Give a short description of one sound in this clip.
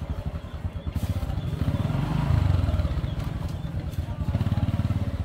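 A motorbike engine idles and revs close by.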